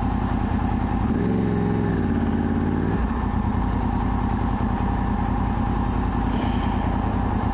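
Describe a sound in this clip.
A motorcycle engine hums steadily at highway speed.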